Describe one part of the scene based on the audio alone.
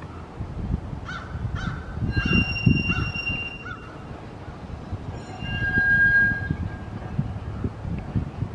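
Steel wheels squeal on a curve of track.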